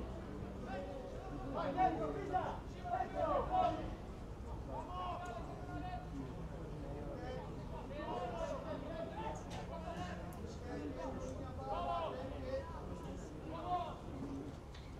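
Young men shout to each other across an open pitch outdoors.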